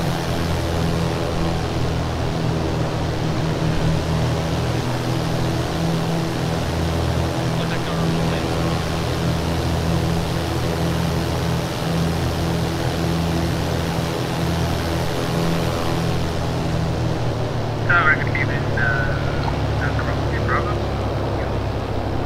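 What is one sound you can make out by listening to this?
A small propeller plane's engine drones steadily.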